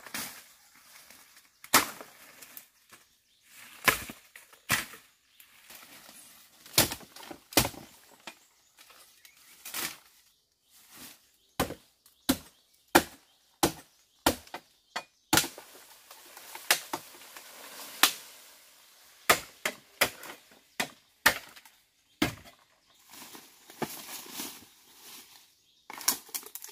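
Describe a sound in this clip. Leaves and twigs rustle as someone pushes through undergrowth.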